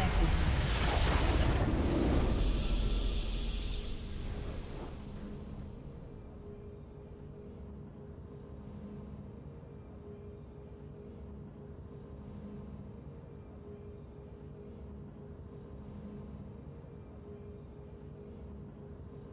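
A victory fanfare swells and then fades into quiet music.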